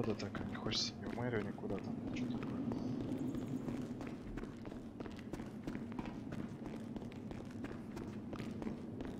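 Footsteps run quickly over gravel and wooden planks.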